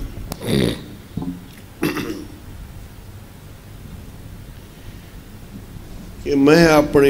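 An elderly man speaks slowly and with feeling into a microphone, with long pauses.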